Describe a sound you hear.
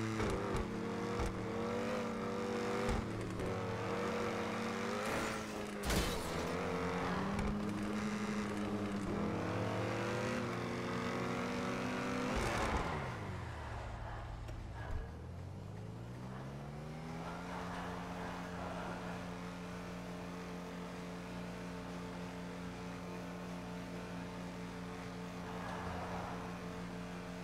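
A car engine revs at high speed, its pitch rising and falling.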